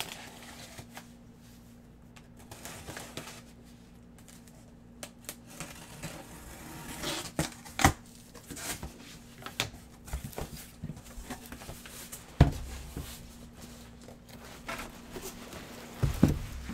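Cardboard boxes knock and scrape as they are handled.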